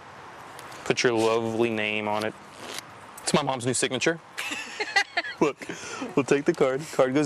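A middle-aged woman laughs excitedly.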